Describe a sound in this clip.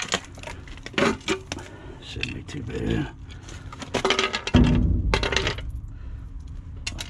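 A plastic housing knocks and scrapes on concrete.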